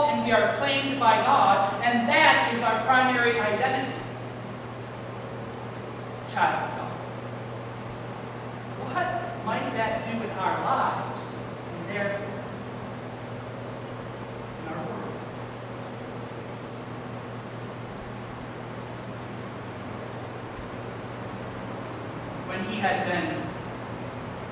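A man speaks into a microphone in a large echoing room, in bursts with pauses.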